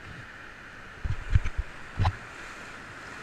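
Waves splash hard against a raft.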